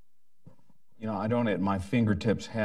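A man speaks clearly and steadily through a microphone.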